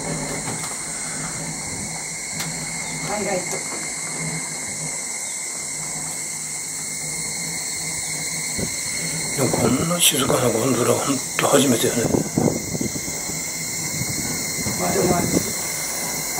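A cable car hums steadily as it glides along its cable.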